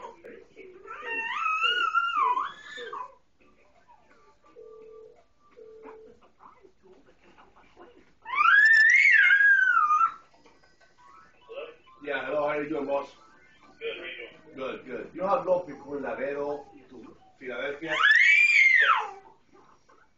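A baby squeals in high, rising and falling tones.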